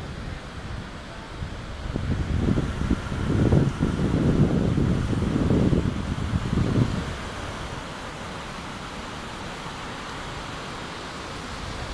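Wind rumbles outdoors in gusts.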